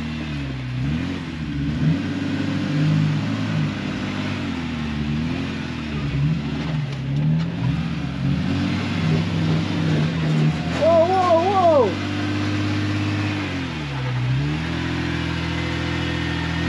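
Tyres crunch and scrape over rocks.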